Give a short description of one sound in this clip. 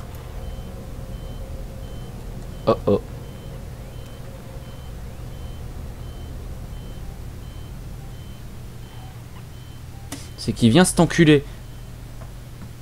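A motion tracker beeps steadily at an even pace.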